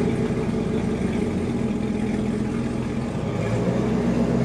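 A car engine rumbles deeply at idle, echoing in a large concrete space.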